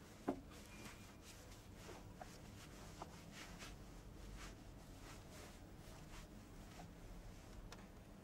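Small objects clatter softly on a wooden surface.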